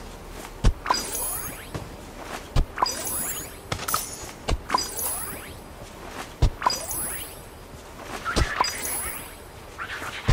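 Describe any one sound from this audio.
A bright sparkling chime rings after each dig.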